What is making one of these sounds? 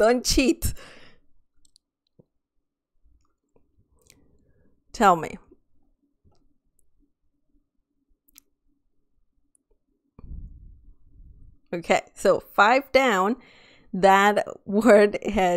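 A young woman talks with animation into a close microphone, in short bursts with pauses.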